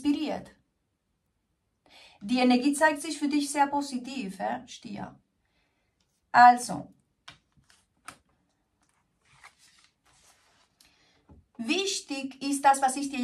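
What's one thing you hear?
A woman speaks calmly and warmly, close by.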